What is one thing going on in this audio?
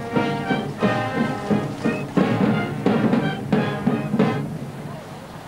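A military brass band plays loudly outdoors.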